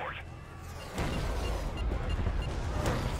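Loud rumbling action sounds from a video game play.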